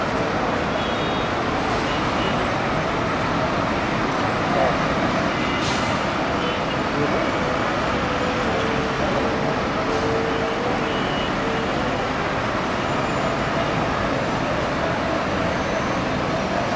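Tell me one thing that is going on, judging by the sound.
Vehicle horns honk now and then in the distance.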